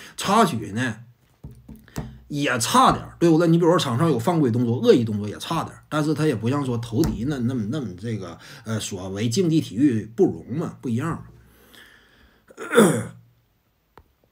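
A young man talks with animation close to a clip-on microphone.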